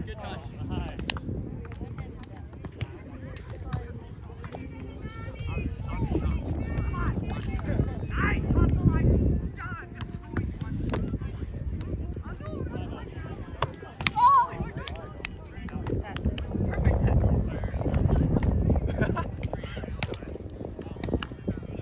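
A volleyball thumps off forearms and hands.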